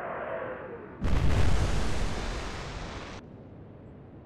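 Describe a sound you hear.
Shells plunge into the sea with loud roaring splashes.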